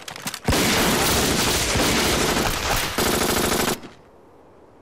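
Rapid gunfire blasts loudly and continuously.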